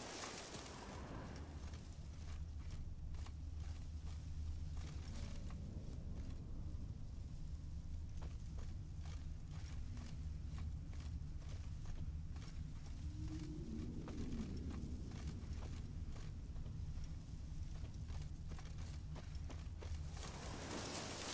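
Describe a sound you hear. Footsteps rustle through grass and leafy undergrowth.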